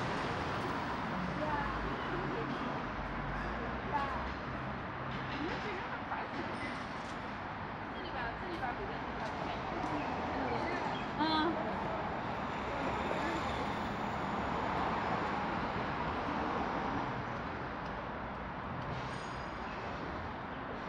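Traffic hums steadily from a nearby road outdoors.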